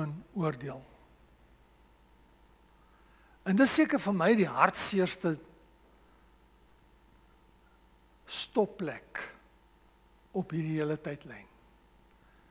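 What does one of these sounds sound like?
A man preaches through a microphone, speaking in short phrases with pauses.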